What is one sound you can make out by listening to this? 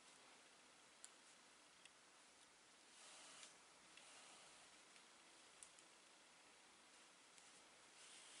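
Plastic crochet hooks click softly against each other.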